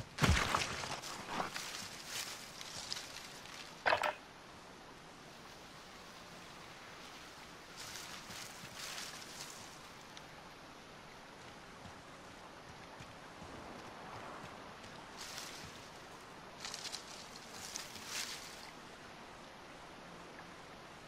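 Footsteps rustle through grass and leafy brush.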